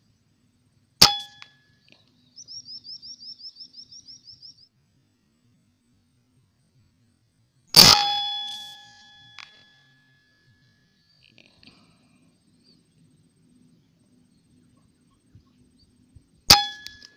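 An air rifle fires with a sharp crack and a brief metallic ring.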